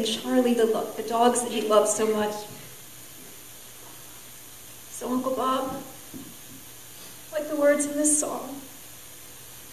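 A woman speaks slowly and softly into a microphone, with pauses.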